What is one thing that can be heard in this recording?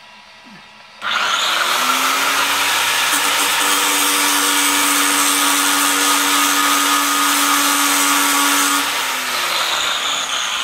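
An electric grinder whirs loudly, grinding metal, then winds down.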